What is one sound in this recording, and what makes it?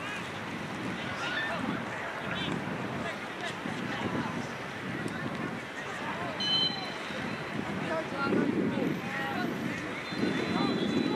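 Young players shout to each other across the field.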